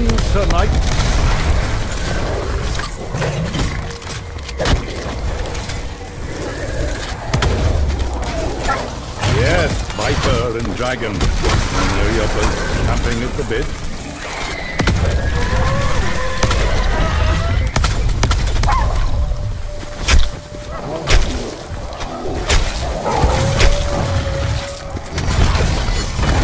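A deep rumble of magic energy fills the air.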